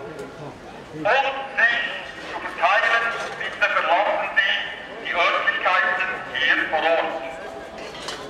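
A crowd of men and women chants loudly outdoors.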